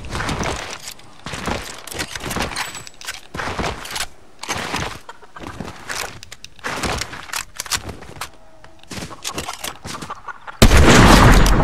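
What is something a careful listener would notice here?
Footsteps patter on the ground.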